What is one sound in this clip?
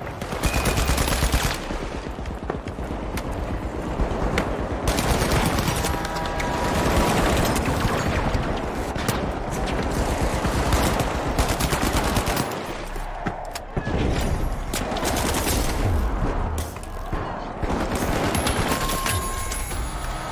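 Rapid gunfire bursts from a rifle.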